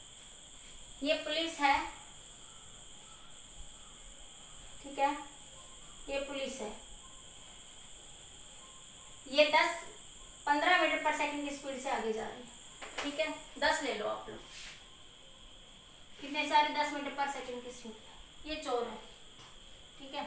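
A woman speaks calmly nearby, explaining.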